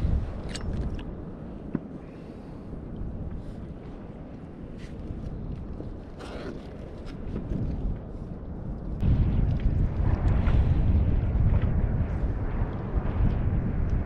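Wind blows across open water, rumbling outdoors.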